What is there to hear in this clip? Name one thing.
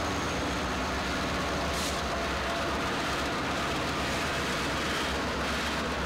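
Diesel locomotives rumble past close by.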